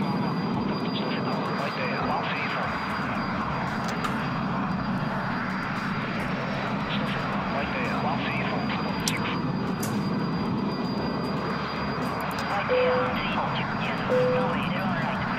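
A jet airliner's engines roar steadily.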